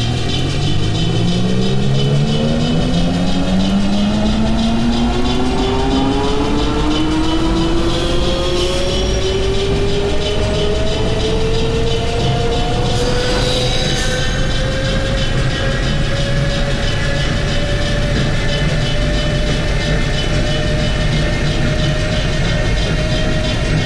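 An electric train motor whines, rising steadily in pitch as the train speeds up.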